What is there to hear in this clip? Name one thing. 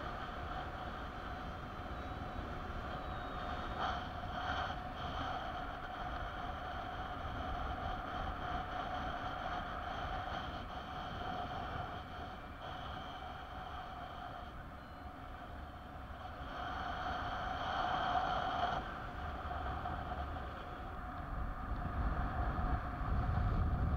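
Wind rushes and buffets loudly, outdoors in open air.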